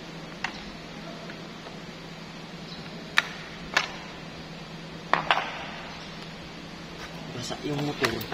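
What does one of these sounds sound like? Plastic parts click and knock together.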